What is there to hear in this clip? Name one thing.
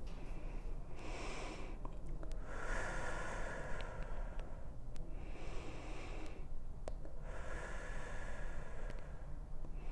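A young woman breathes in and out slowly and deeply.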